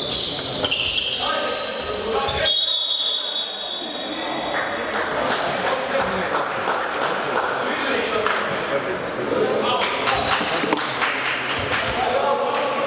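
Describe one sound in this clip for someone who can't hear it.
Voices echo through a large hall.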